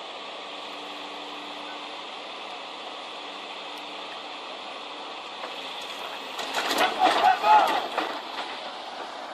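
An excavator engine hums steadily.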